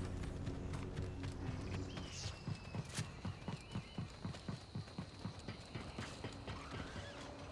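Footsteps thud quickly as someone runs.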